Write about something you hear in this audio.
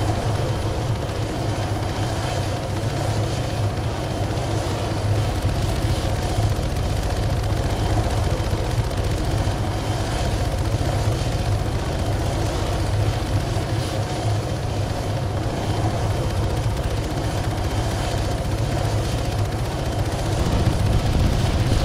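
A helicopter engine whines steadily.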